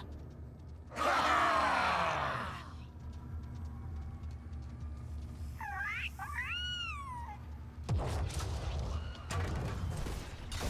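Game weapons and spells clash in bursts of fighting.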